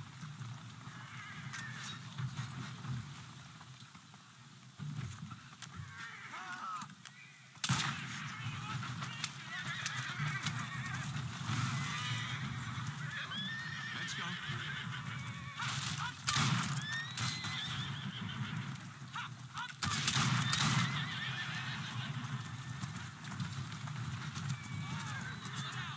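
A horse-drawn carriage rattles over cobblestones.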